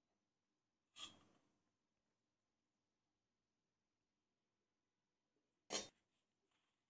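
A metal spoon clinks against a steel plate.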